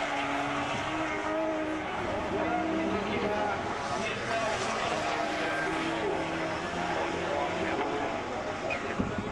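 Rally car engines roar loudly as they race past on a dirt track.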